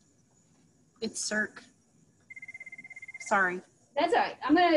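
A middle-aged woman speaks calmly through a microphone.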